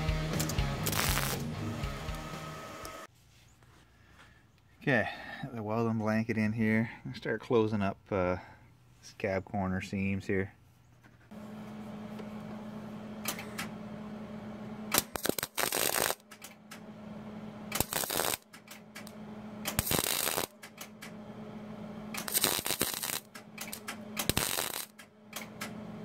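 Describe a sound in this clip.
An arc welder crackles and buzzes in short bursts.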